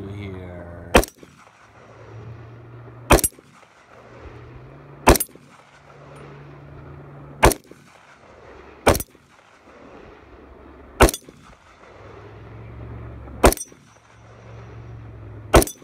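A bullet rings against a steel target.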